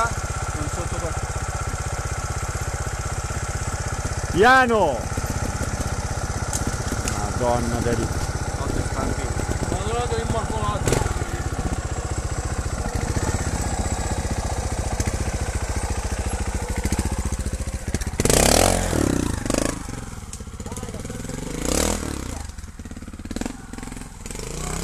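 A motorbike engine putters steadily close by.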